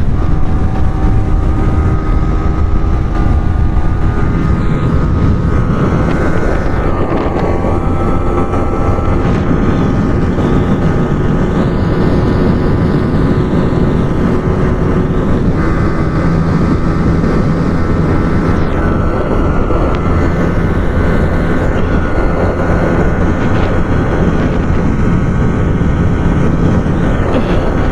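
Wind rushes loudly past at high speed.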